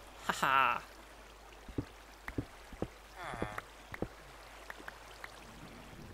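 A pickaxe chips at stone blocks with short taps.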